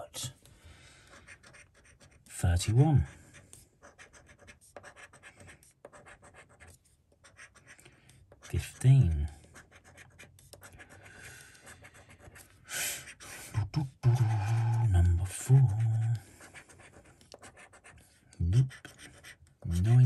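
A coin scratches across a card.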